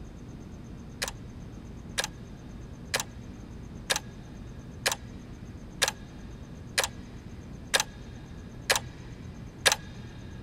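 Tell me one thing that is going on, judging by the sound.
A clock ticks slowly and steadily, about once a second.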